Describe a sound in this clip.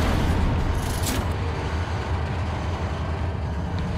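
Heavy metal doors grind shut over bubbling molten metal.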